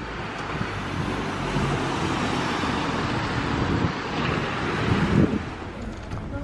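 Vehicles drive by on a wet street with a steady hiss of tyres.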